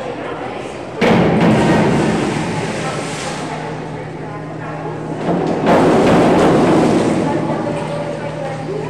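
A diver splashes into the water of an echoing pool.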